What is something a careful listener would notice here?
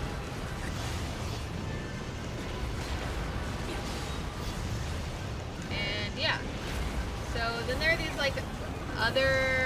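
Explosions rumble and boom in a game.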